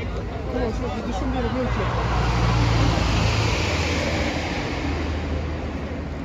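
A police van drives past.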